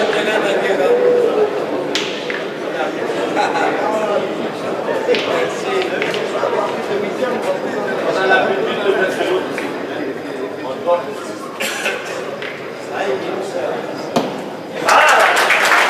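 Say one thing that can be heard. A large crowd murmurs and chatters.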